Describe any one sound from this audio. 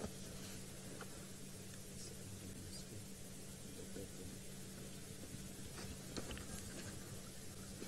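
Vultures hiss and squabble close by.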